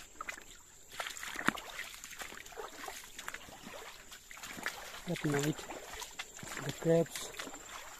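Shallow water trickles gently over stones.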